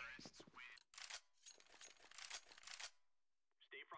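A rifle is handled with sharp metallic clicks.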